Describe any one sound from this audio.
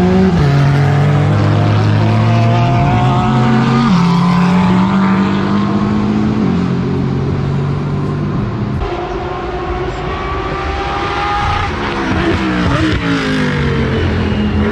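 Racing car engines roar loudly as the cars speed past.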